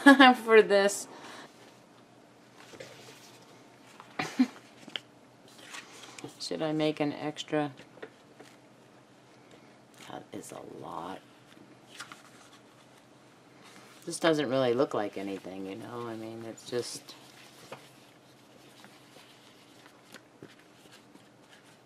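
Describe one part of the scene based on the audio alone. Stiff fabric rustles and slides as it is handled.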